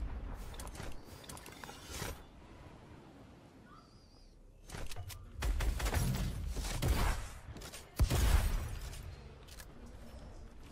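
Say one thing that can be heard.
Footsteps patter on grass and wood.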